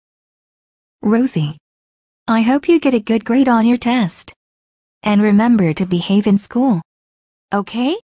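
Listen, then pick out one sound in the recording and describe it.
A woman speaks in a calm synthetic voice.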